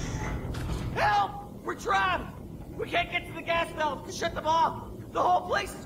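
A man shouts urgently and in panic, heard close.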